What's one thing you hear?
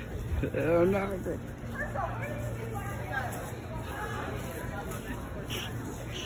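Footsteps crunch on dry grass outdoors.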